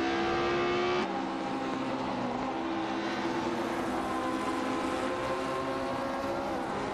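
A racing car engine drones steadily at a distance.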